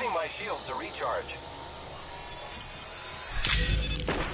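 A healing injector hisses and clicks.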